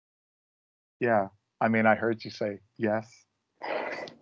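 A woman talks calmly over an online call.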